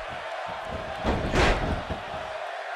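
A heavy body slams onto a wrestling mat.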